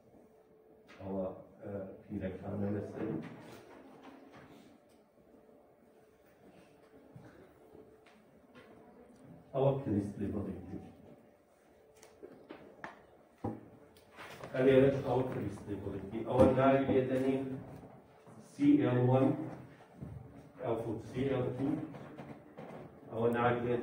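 An older man lectures calmly.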